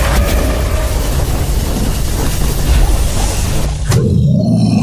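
Laser beams blast and crackle steadily.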